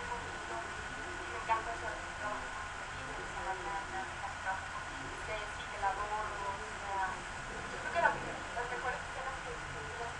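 A young woman talks with animation through a thin-sounding microphone.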